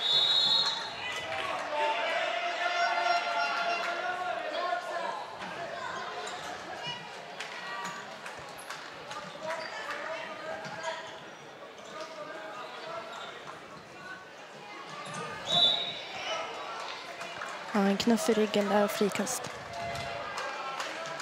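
A handball bounces and thuds in an echoing hall.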